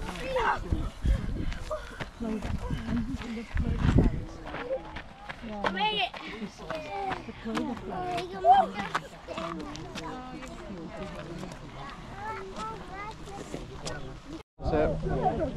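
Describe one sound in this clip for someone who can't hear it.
Young children shout and laugh excitedly outdoors.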